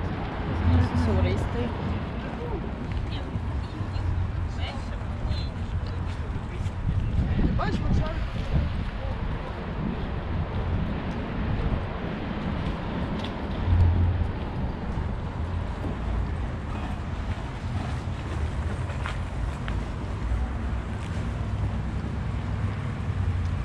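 Wind rumbles over the microphone outdoors.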